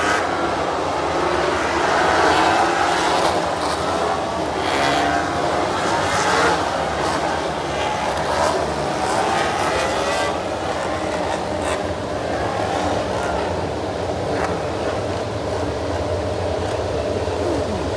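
Spray hisses from tyres on a wet track.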